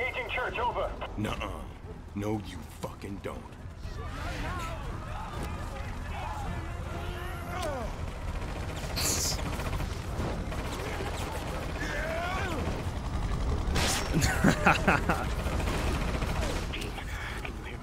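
A helicopter's rotor thuds.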